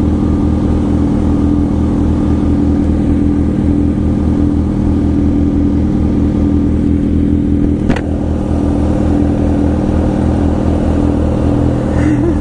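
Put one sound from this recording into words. A motorcycle engine idles close by with a steady, throbbing rumble.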